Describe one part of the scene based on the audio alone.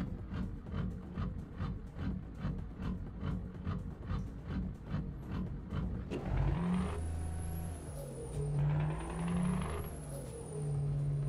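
A truck engine rumbles and revs up through the gears.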